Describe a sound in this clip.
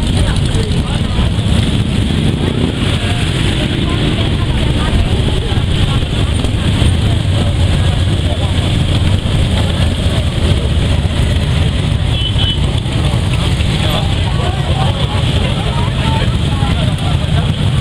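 Many motorcycle engines rumble loudly as they ride past close by.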